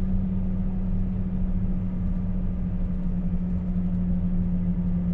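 A truck's diesel engine hums steadily from inside the cab.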